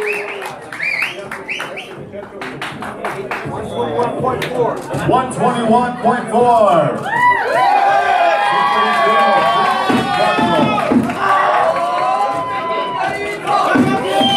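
A crowd of men chatters nearby.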